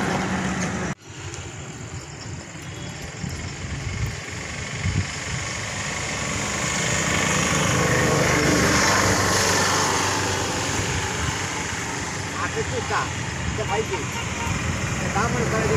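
Cows tear and munch grass close by.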